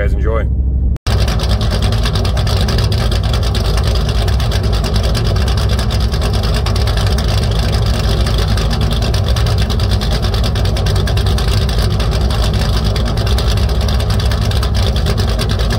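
A car exhaust rumbles loudly while the engine idles.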